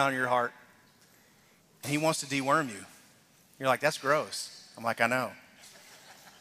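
A man speaks with animation through a loudspeaker in a large echoing hall, in short bursts.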